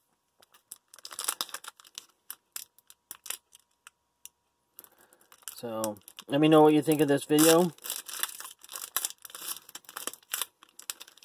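Fingers crinkle and tear open a foil wrapper.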